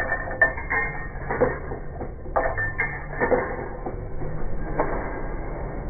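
Coins clink as a hand drops them into the metal slot of a coin pusher machine.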